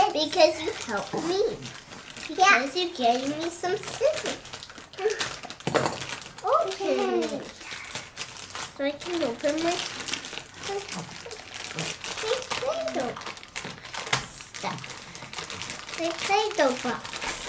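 A young girl talks with animation close by.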